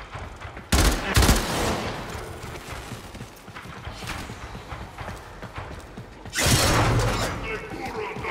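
Gunshots blast in loud, short bursts.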